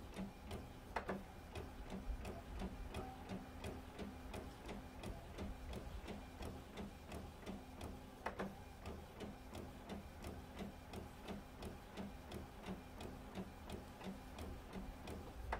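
A printer whirs and clicks rhythmically as it feeds paper through.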